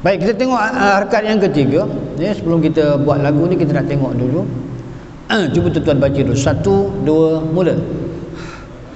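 An elderly man chants melodically into a microphone in an echoing hall.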